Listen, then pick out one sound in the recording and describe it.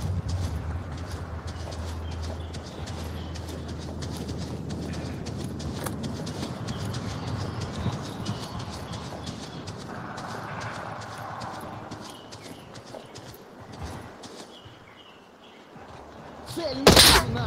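Footsteps pad steadily across grass.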